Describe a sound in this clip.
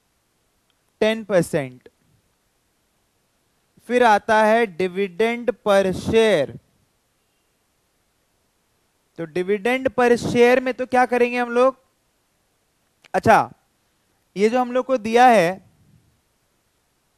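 A young man speaks calmly and closely into a microphone, in short bursts with pauses.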